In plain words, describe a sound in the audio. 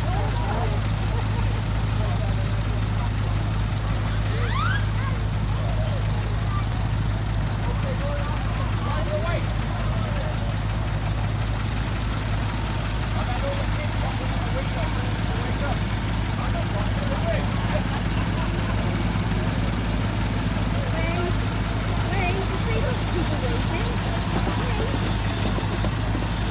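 A small engine chugs and hums steadily nearby.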